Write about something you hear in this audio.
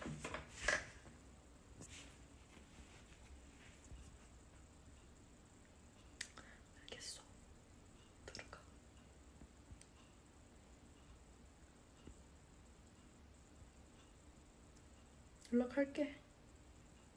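A young woman speaks softly and briefly, close to a phone microphone.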